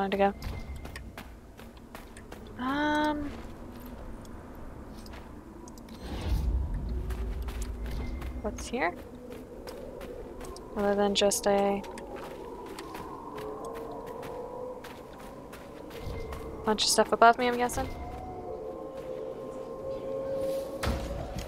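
Footsteps crunch on sandy ground.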